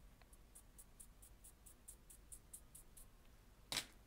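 A pencil scratches rapidly on paper in short strokes.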